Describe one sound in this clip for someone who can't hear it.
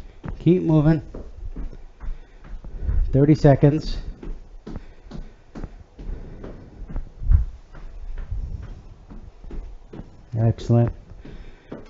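Sneakers thump and scuff on a wooden floor as a man steps in place.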